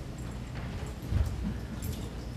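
A body thumps onto a stage floor.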